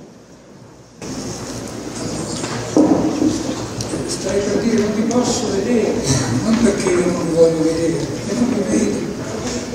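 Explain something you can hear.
A man speaks calmly into a microphone over loudspeakers.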